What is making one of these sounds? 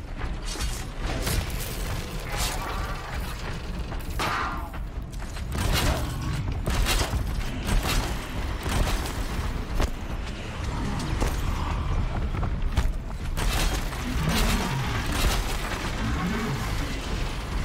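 Heavy mechanical creatures stomp and growl.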